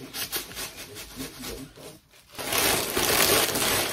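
Fabric rustles as cloth is handled and unfolded.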